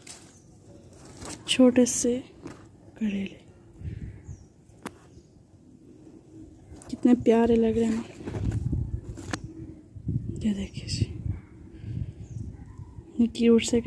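Leaves rustle softly as a hand handles a plant.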